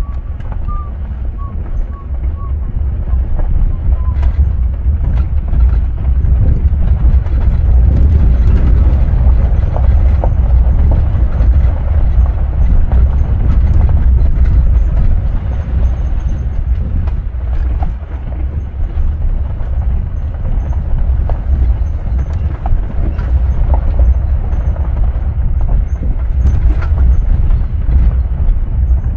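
Small stones click and knock against the underside of the vehicle.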